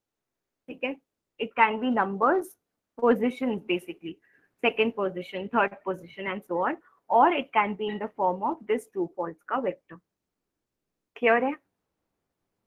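A young woman speaks calmly into a microphone, heard as if over an online call.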